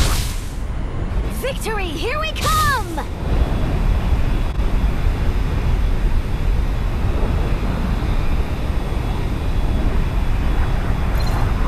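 Wind rushes past a game character falling through the air.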